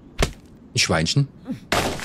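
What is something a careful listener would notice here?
An axe chops into a tree trunk.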